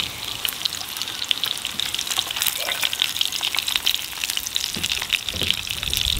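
Silicone tongs turn sausages in a frying pan.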